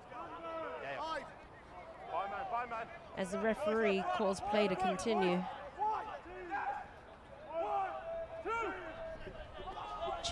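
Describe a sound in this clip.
Men shout calls to each other across an open field.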